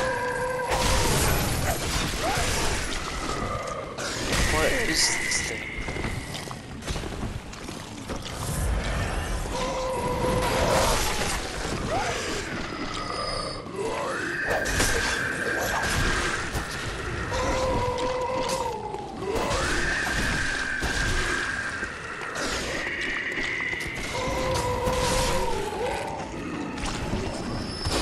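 Creatures howl and groan in pain.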